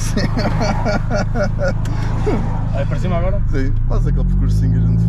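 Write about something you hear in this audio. Two young men laugh and talk with animation up close.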